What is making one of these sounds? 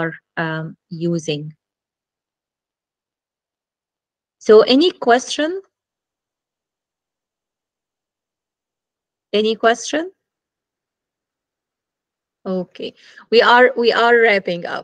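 A woman speaks calmly in bursts through an online call.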